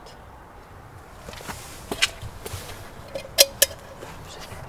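A lighter clicks.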